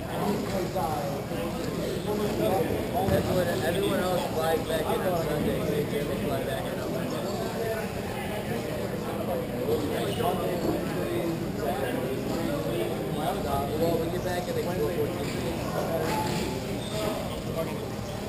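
Skate wheels roll and scrape across a hard floor.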